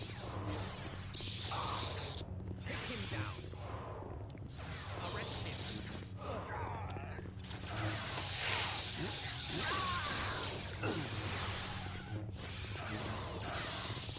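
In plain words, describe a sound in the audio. Lightsabers clash with sharp crackling hits.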